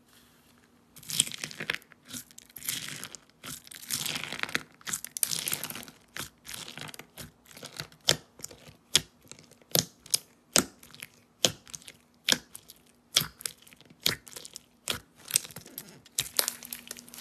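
Fingers press and pop into crunchy beads in a sticky slime.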